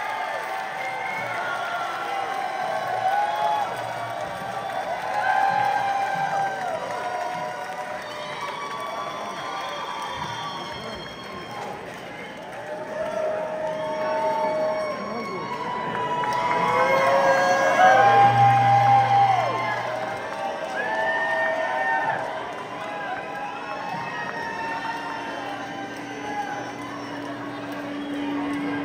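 A large crowd sings along loudly in a big echoing hall.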